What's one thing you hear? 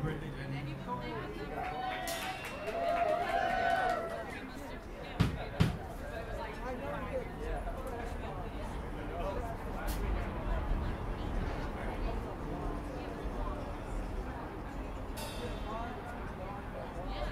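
A crowd of men and women chatters and murmurs outdoors.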